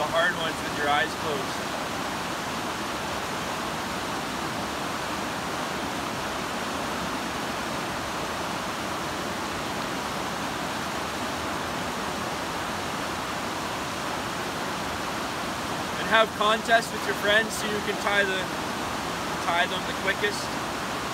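A river rushes steadily over rocks nearby.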